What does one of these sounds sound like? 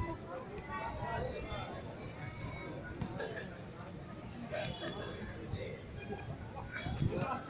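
Young men talk and call out nearby outdoors.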